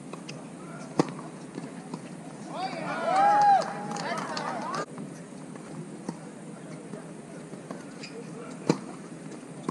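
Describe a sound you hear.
A tennis ball is struck with rackets in a rally.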